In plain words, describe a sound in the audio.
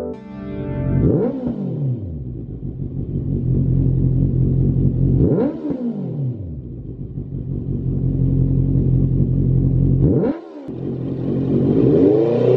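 A motorcycle engine revs up sharply and falls back several times.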